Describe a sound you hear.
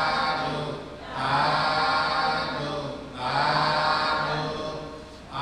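A middle-aged man speaks calmly and steadily into a microphone, heard through a loudspeaker.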